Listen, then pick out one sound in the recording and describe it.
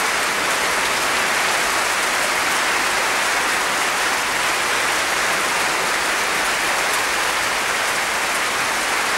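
A large audience applauds steadily in an echoing hall.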